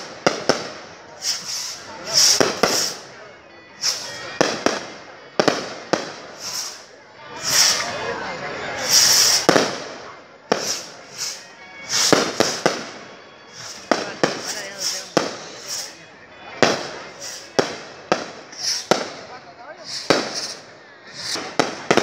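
Fireworks bang and crackle loudly overhead, over and over.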